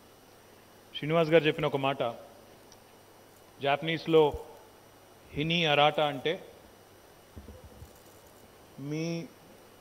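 A man speaks calmly into a microphone over a loudspeaker, in short phrases with pauses.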